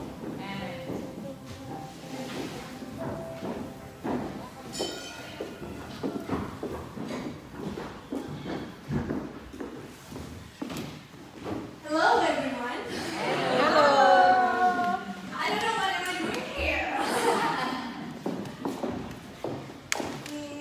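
A young woman speaks into a microphone through loudspeakers in a large echoing hall.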